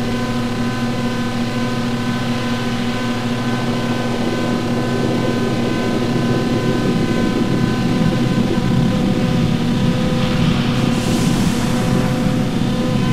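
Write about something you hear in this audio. Electronic synthesizers play a droning, buzzing texture of steady tones that slowly grows louder and denser.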